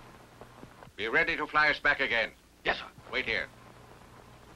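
A man speaks in a low, tense voice nearby.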